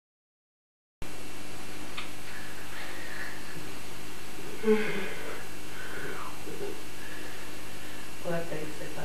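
Bedding rustles as a man stirs in bed.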